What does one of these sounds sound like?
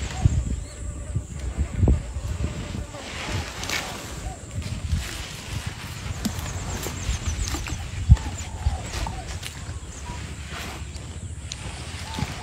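A large animal rustles and crunches through dry leaves and twigs close by.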